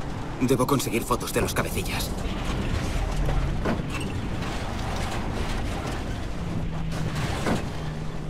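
An off-road jeep engine drones as it drives.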